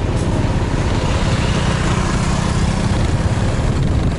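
A passing motorbike buzzes by.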